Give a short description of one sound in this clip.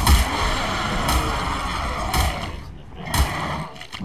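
A bear strikes with heavy thuds.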